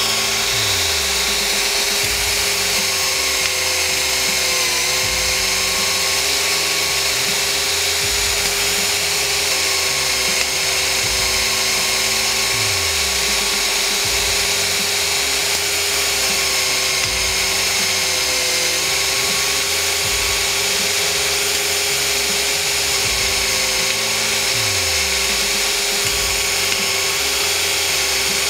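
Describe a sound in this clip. A cordless drill whirs steadily, turning a pipe cutting machine.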